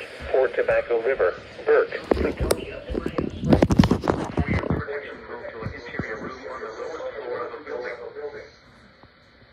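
A radio loudspeaker plays a man's voice reading out.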